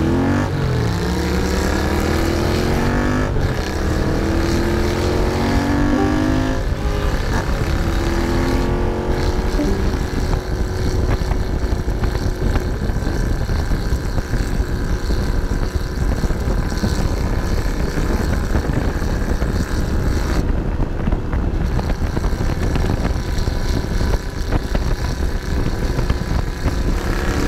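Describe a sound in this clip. A motorcycle engine revs up and shifts through the gears.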